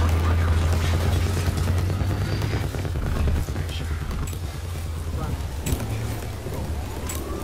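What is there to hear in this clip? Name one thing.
A tank engine rumbles deeply nearby.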